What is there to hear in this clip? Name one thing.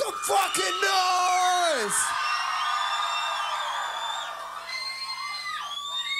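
A crowd cheers and shouts in a large hall.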